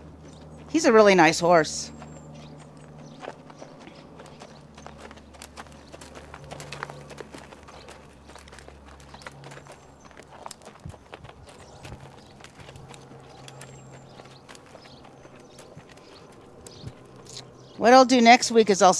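A horse's hooves thud softly on sand.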